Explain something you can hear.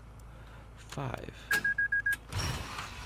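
Keypad buttons beep as they are pressed.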